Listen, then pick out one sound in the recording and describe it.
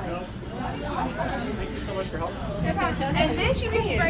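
Several women chat and laugh nearby.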